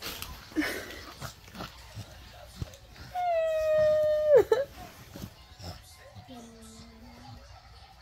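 A young woman cries and sobs close by.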